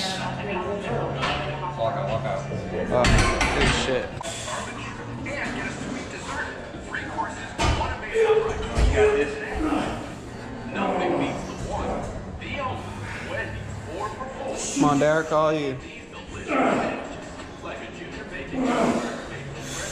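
Weight plates clank on a barbell.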